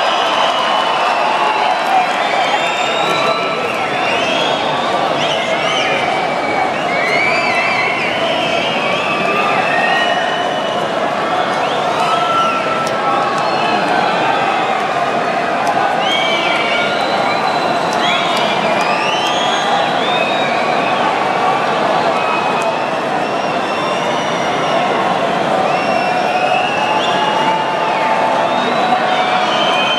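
A large crowd chatters and murmurs nearby.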